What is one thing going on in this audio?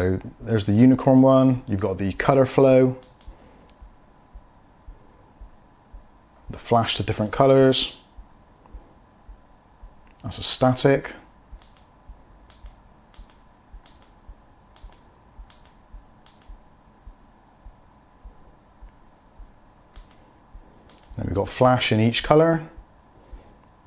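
A man talks calmly and close by in short bursts.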